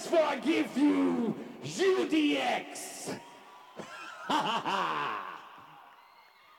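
A man shouts into a microphone through loudspeakers in a large echoing hall.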